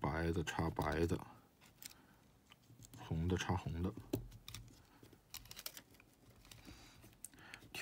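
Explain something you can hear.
Small plastic connectors click and rustle as they are pressed into place.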